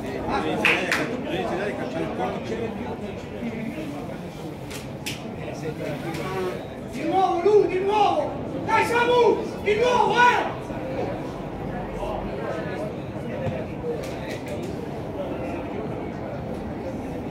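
Young men shout to each other outdoors, some distance away.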